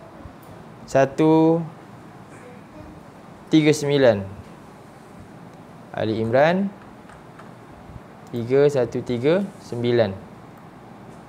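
A man speaks slowly and calmly nearby, in short phrases with long pauses.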